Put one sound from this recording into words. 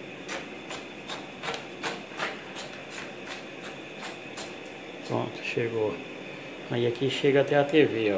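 A cable scrapes and taps against a box.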